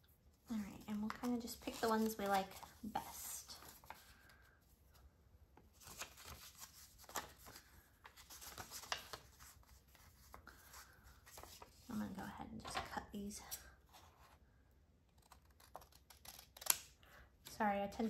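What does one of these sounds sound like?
Paper rustles and slides as hands handle cards.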